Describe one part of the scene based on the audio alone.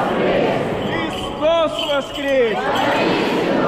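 A man's loud voice calls out in a large echoing hall.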